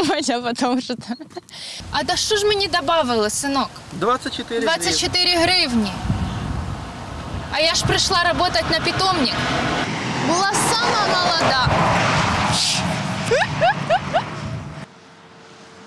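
A young woman speaks with animation into a microphone outdoors.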